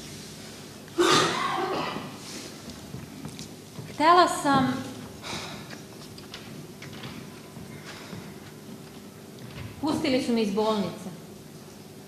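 A young woman speaks in an echoing hall.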